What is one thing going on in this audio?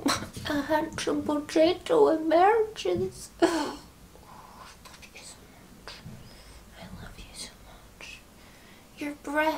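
A young woman speaks playfully and close by, in a high sing-song voice.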